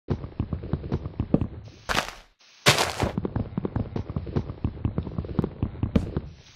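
Wooden knocks tap rapidly as a block of wood is hit.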